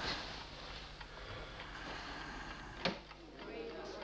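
A door opens with a creak.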